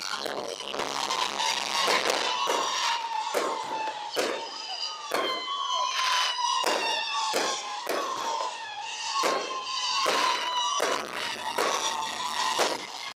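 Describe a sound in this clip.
Fireworks whistle shrilly as they rise.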